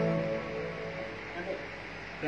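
An electronic keyboard chord rings out and fades.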